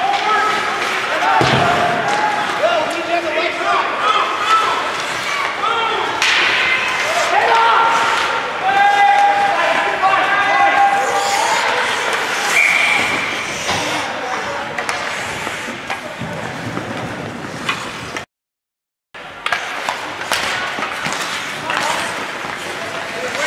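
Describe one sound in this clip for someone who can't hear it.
Hockey sticks clack against the puck and each other.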